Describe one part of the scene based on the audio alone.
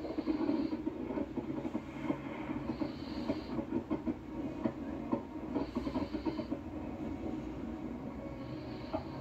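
Fireworks boom dully through a television speaker.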